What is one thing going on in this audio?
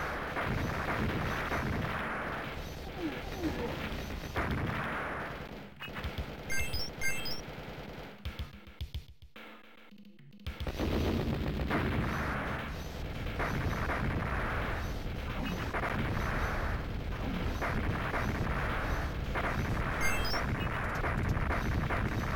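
Game explosions boom and crackle.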